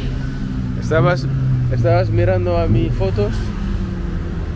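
A motor scooter rides past on a street.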